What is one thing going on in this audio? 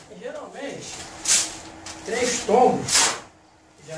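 A metal shovel scrapes across a concrete floor.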